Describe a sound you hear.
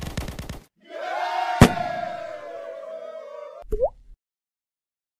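A short cheerful victory jingle plays with a sparkling chime.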